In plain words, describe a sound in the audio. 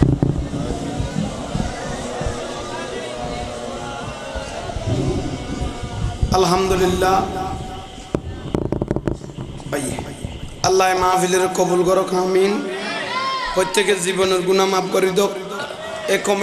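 A man recites in a loud, singing voice through a microphone and loudspeakers.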